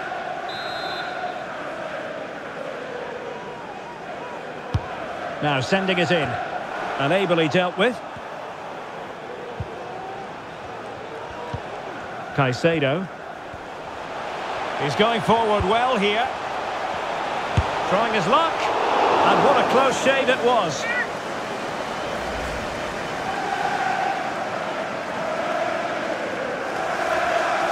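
A large stadium crowd roars steadily, swelling louder for a while.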